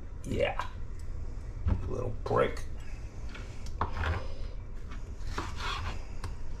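A knife cuts through tomatoes and taps on a cutting board.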